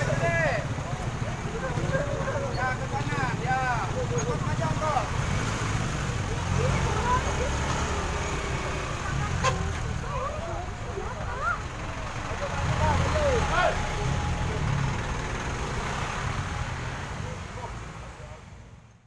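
A truck engine idles and rumbles close by.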